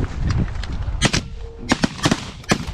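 A shotgun fires several loud shots.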